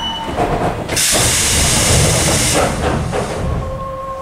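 Train doors slide open with a rush of air.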